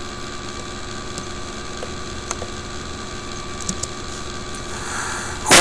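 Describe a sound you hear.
An electric guitar plays quietly.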